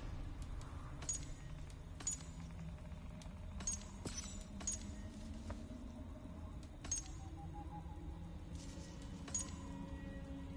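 Soft menu clicks tick now and then as items are selected.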